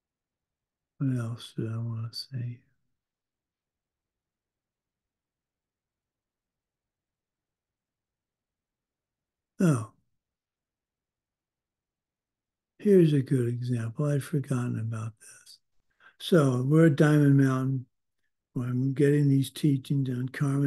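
An older man speaks calmly over an online call, with long pauses.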